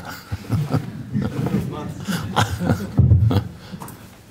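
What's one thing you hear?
An elderly man laughs softly.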